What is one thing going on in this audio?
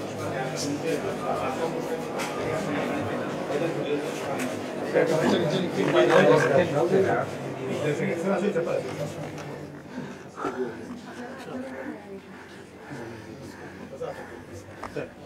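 A crowd of men talk and murmur close by.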